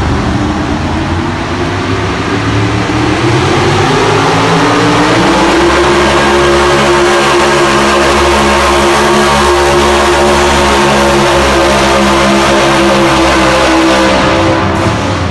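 A truck engine roars loudly and rises in pitch as it pulls a heavy sled.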